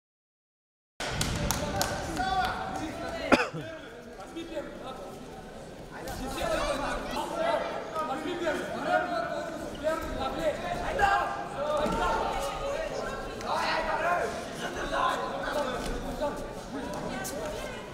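A crowd in a large echoing hall chatters and shouts.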